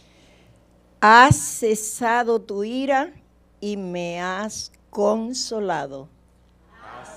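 A woman sings through a microphone in an echoing hall.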